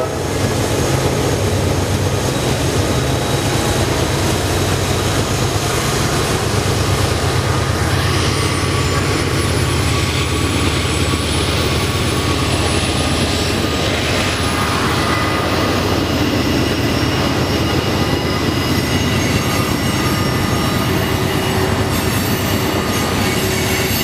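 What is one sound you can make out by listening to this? Freight cars clatter and squeal along the rails.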